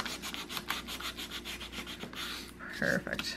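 A file rasps quickly back and forth along a card edge.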